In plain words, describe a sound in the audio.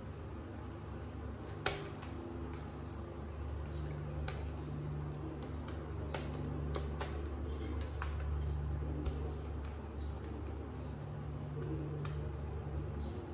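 A shaving brush swishes and squelches through thick lather.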